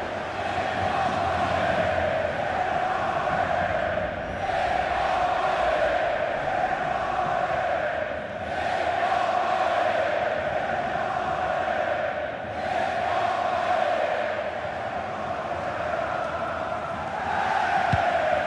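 A large crowd chants and roars steadily in a stadium.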